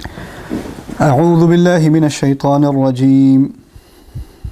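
A man recites in a long, melodic chant, close to a microphone.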